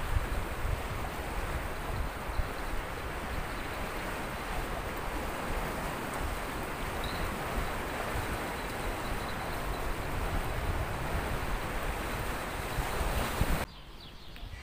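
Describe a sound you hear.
Wind blows strongly outdoors, rumbling loudly.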